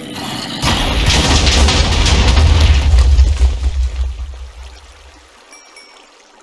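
Explosions boom and rumble in a video game.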